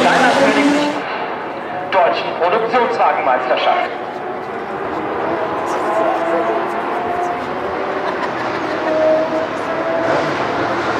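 Car engines rumble slowly in a line.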